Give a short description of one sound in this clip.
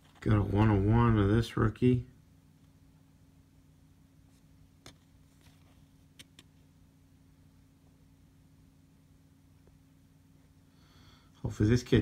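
Stiff cards slide and rustle against each other.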